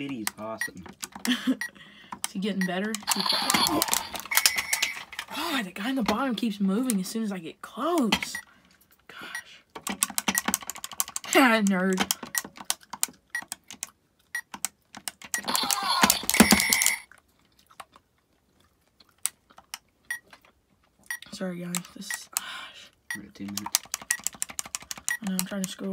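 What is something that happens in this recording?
A small electronic device plays warbling, chirping electronic sounds through a tiny speaker.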